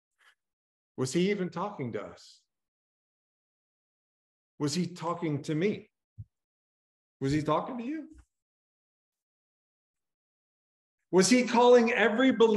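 A middle-aged man speaks calmly in short phrases, heard through an online call.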